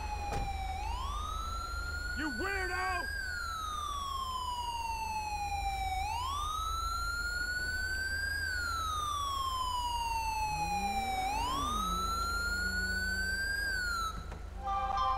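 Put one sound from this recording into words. A police siren wails, rising and falling in long sweeps.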